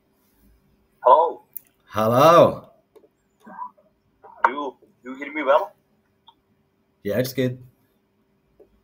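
A young man speaks cheerfully over an online call, in short bursts.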